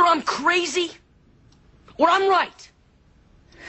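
A boy speaks in short bursts close by.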